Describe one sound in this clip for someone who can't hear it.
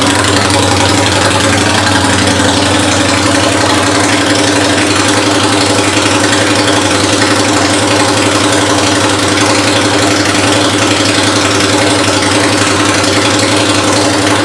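A motorcycle engine idles with a steady, deep rumble.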